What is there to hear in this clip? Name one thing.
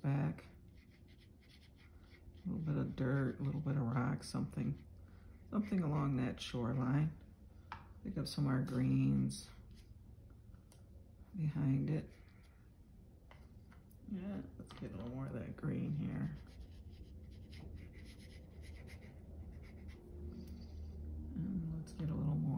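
A flat brush strokes wet paint across watercolour paper.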